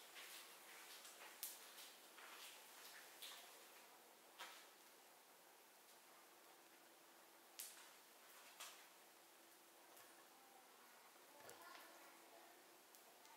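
A fire crackles and pops now and then.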